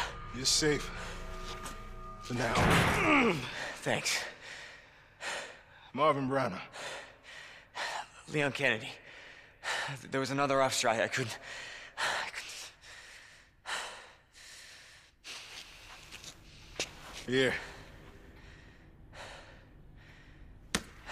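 A wounded man speaks weakly and breathlessly.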